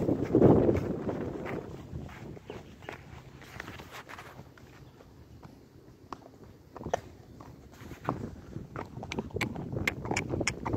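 Horse hooves thud and crunch on dry leaves and gravel at a steady walking pace.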